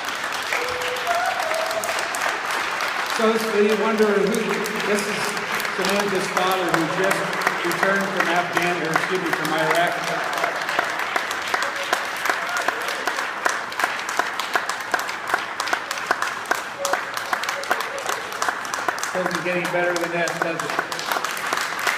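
A crowd claps steadily.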